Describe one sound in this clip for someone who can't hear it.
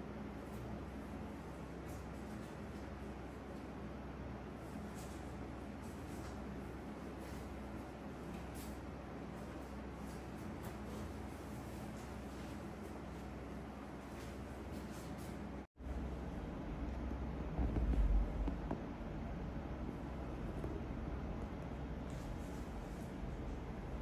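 Fingers rub and tap softly on a man's head, close up.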